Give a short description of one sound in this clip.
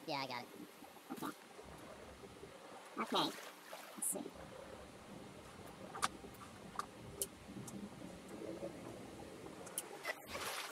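Water murmurs and bubbles dully underwater.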